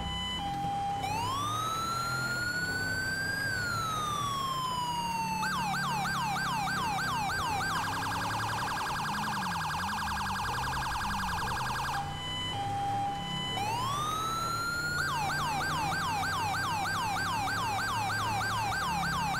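A police siren cycles through wailing and fast yelping tones.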